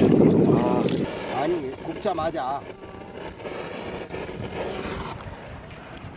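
A gas torch roars with a steady hiss.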